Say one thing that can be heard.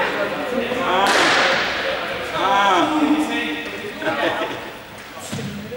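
Young people shout and call out in a large echoing hall.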